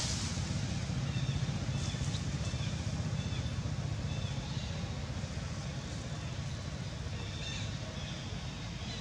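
A young monkey gives soft, high squeaks.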